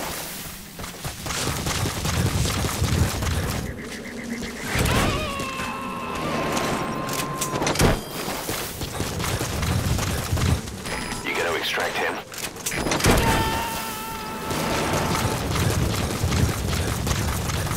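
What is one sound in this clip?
Footsteps run across dry ground.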